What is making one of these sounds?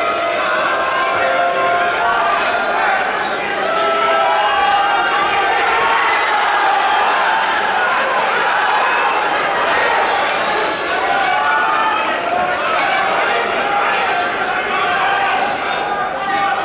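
A crowd of spectators shouts and cheers throughout a large echoing hall.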